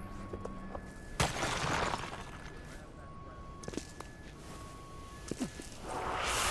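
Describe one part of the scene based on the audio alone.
Footsteps thud on a rooftop.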